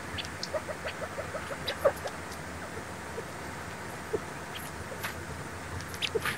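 Small birds peck at a snowy stump with soft, quick taps.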